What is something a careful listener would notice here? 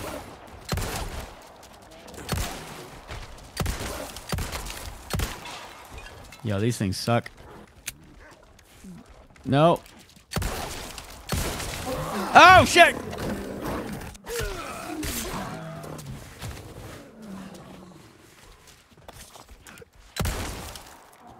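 Handgun shots ring out one at a time.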